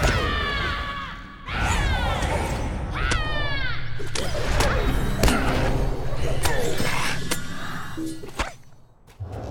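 Game combat sounds whoosh and clash.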